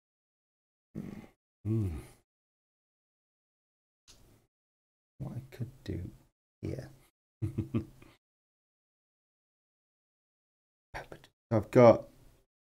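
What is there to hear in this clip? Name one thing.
A second man answers briefly in a calm voice.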